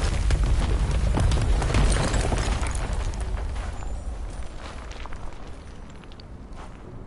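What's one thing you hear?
Rocks crash and rumble as they fall, then the rumbling fades.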